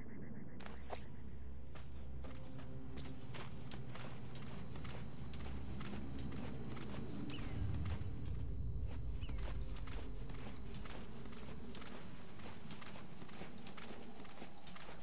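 A soldier's boots scuff and rustle over dry, gravelly ground.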